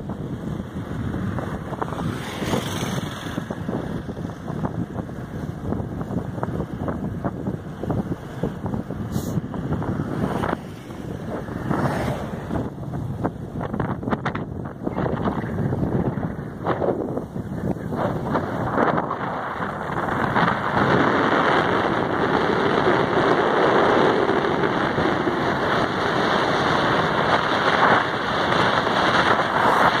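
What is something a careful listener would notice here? Wind roars loudly past the microphone while driving outdoors.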